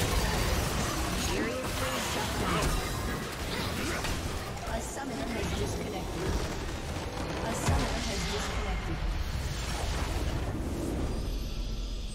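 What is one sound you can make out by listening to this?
Game spell effects crackle, whoosh and boom in a busy fight.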